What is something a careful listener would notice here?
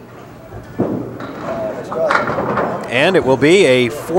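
Pins clatter as a bowling ball knocks them down.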